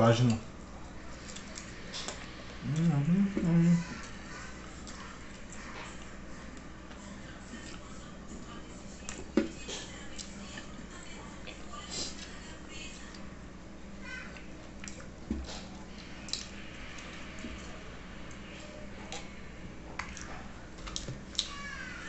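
A young man chews food noisily close by.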